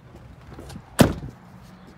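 A vehicle door slams shut.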